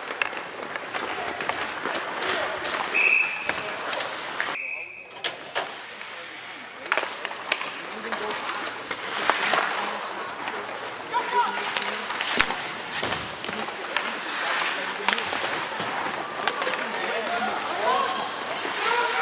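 Skates scrape and carve across the ice.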